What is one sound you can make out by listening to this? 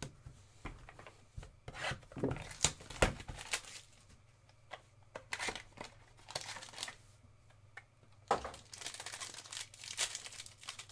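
Foil card wrappers crinkle and tear up close.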